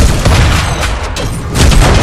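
A heavy rotary gun fires in a rapid, roaring burst.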